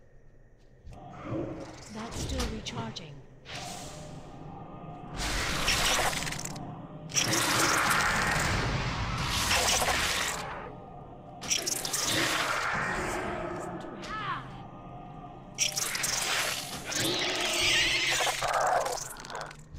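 Magic spells whoosh and burst again and again.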